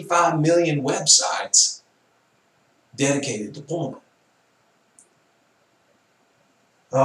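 A middle-aged man speaks calmly and clearly into a nearby microphone, pausing between phrases.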